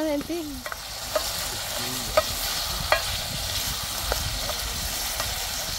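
A spoon clinks and scrapes against a metal pot.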